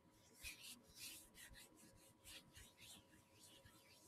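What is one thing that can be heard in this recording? Hands rub together close to a microphone.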